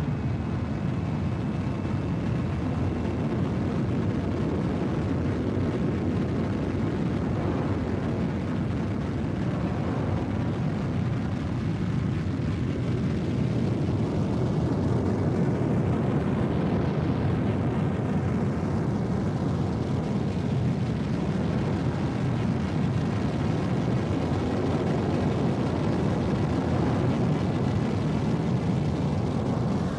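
A spacecraft engine roars steadily as the craft flies fast.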